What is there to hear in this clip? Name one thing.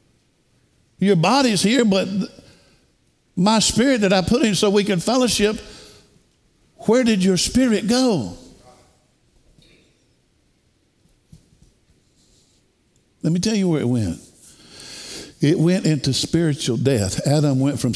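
An older man speaks with animation through a headset microphone, in bursts with pauses.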